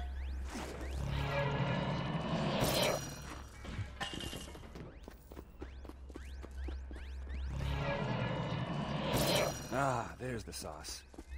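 A crackling energy effect buzzes and hums in bursts.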